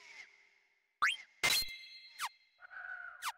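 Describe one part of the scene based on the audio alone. Short electronic menu blips chime.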